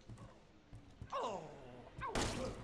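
A man groans hoarsely close by.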